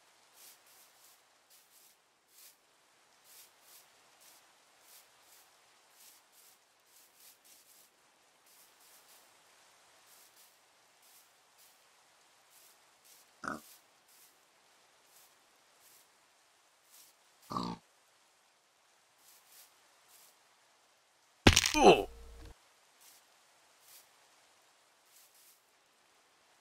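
Soft footsteps tread over grass.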